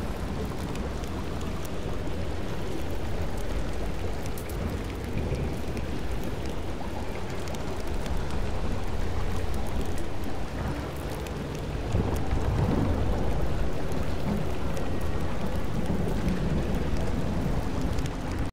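Flames crackle from small fires nearby.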